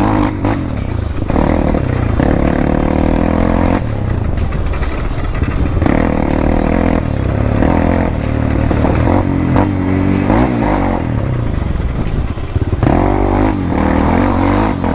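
Tyres crunch over a rough gravel track.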